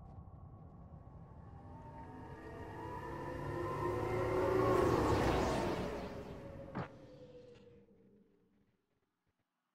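A transit car whooshes in, growing louder, then fades away.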